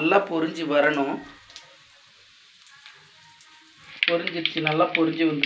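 Oil sizzles softly in a pan.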